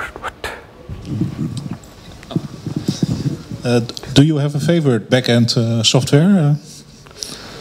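A second man asks a question into a handheld microphone.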